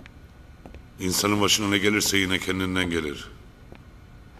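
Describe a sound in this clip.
A man talks on a phone in a deep voice.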